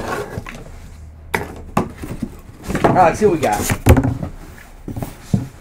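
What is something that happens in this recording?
A wooden crate thumps and scrapes as hands handle it.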